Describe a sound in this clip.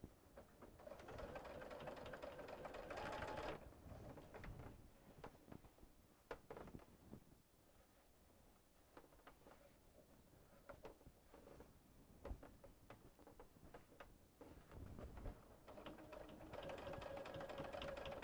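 A sewing machine whirs steadily in bursts.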